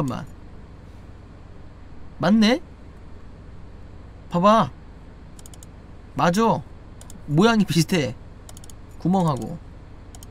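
A young man speaks in short bursts with animation into a microphone.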